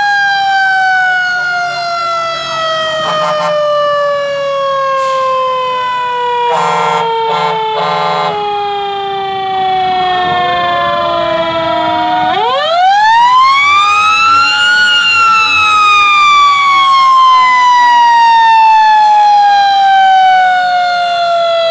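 A fire engine siren wails loudly close by, sliding down and then sweeping up in pitch.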